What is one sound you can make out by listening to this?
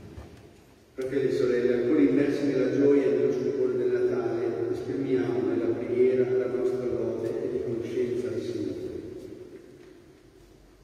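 An elderly man reads aloud through a microphone in a large echoing hall.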